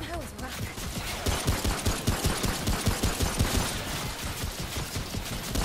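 A pistol fires a quick series of shots.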